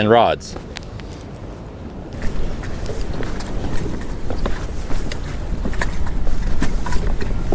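Sea waves wash against rocks.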